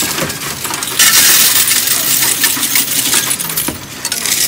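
Coins rattle and clatter loudly inside a counting machine.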